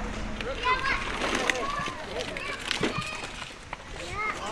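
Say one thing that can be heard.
Young children shout and chatter close by outdoors.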